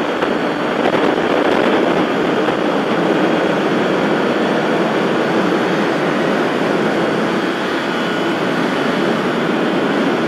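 Wind rushes loudly past the rider.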